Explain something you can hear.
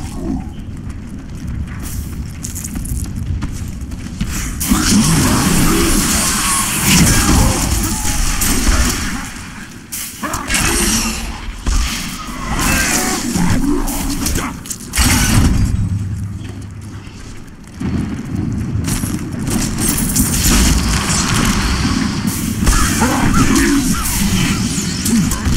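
Weapons strike and thud against monsters.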